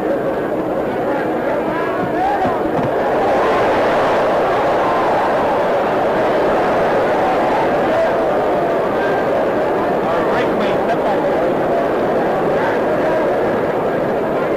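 A large crowd roars and murmurs in an arena.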